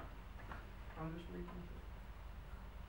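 A woman speaks briefly nearby.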